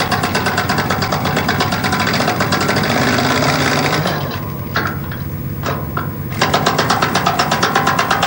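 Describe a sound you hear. A heavy track machine's engine rumbles and clanks nearby.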